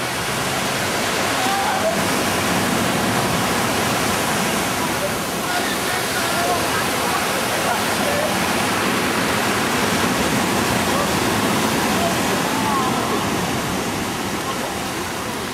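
Waves crash and surge steadily onto a beach.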